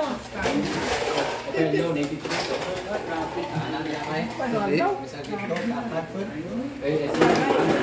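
Several people talk nearby in a room.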